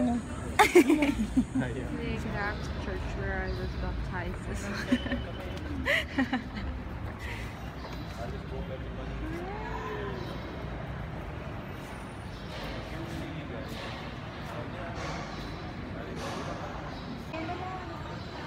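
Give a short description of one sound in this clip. People murmur softly in a large echoing hall.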